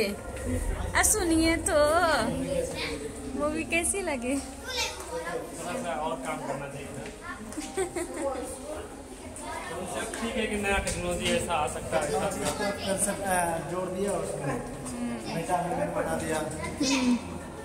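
Young men talk and laugh close by with animation.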